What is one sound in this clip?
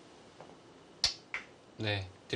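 A stone clicks down on a wooden game board.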